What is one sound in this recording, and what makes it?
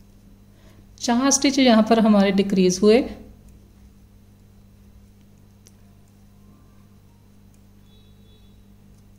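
A crochet hook softly draws yarn through stitches.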